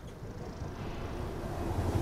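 Steam hisses from a pipe.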